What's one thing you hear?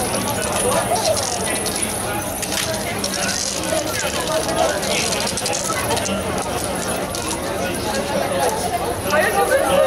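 A crowd of people chatters outdoors in a busy street.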